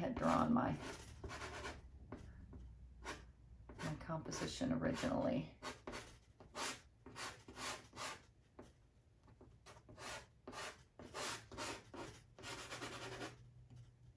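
Soft pastel scrapes and rubs across paper in quick, repeated strokes.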